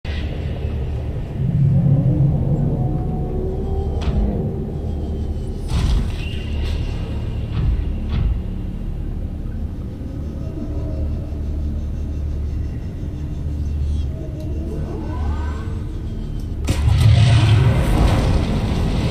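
A vehicle's engine hums low and steady underwater.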